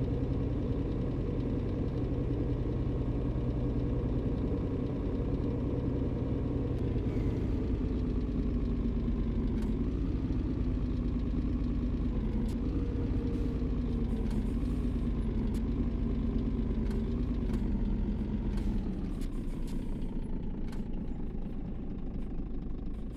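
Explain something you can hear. A truck engine hums steadily and slowly drops in pitch as the truck slows down.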